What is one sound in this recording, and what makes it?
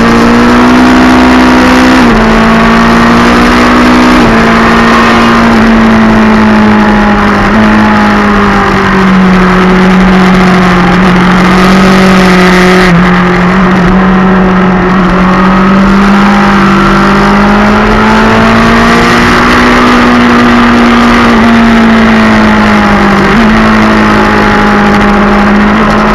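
A motorcycle engine roars loudly at high revs, its pitch rising and dropping with gear shifts.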